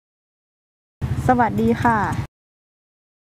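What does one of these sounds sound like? A young woman speaks briefly and calmly.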